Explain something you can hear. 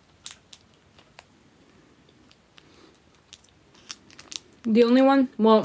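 A candy wrapper crinkles softly.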